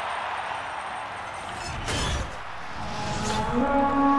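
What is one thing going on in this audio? A heavy iron gate clanks and rattles open.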